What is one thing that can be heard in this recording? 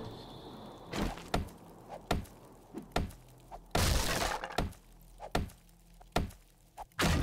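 An axe thuds against a wooden door in repeated blows.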